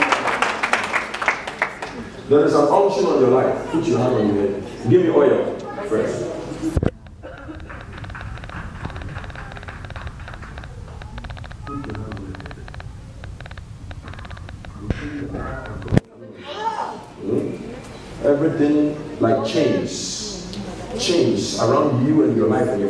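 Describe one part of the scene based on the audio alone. A crowd murmurs in a large room.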